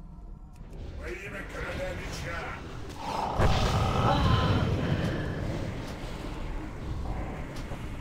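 Magic spells crackle and boom in a fierce fight.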